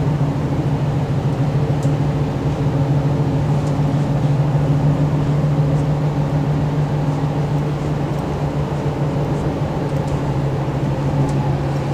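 A train hums and rumbles steadily as it rolls along the track.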